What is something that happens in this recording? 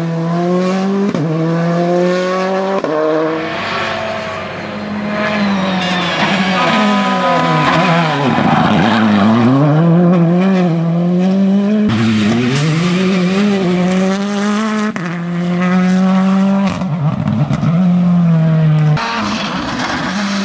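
A rally car engine roars loudly, revving up and down as it races past.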